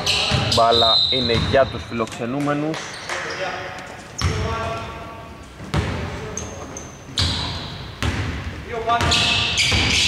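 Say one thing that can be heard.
Young men shout and call out to each other across the echoing hall.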